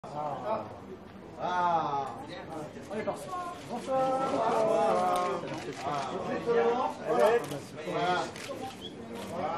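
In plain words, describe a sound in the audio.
Several adults talk and call out nearby in a lively crowd.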